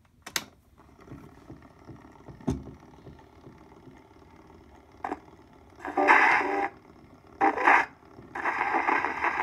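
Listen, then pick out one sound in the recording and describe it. A gramophone needle scratches on a spinning record.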